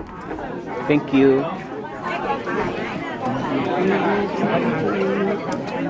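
A crowd of men and women chatters loudly indoors.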